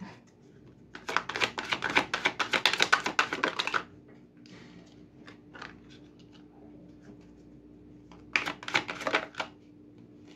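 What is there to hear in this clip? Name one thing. A deck of cards is shuffled with a quick riffling flutter.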